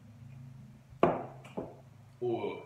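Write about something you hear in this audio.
A glass mug knocks down onto a table.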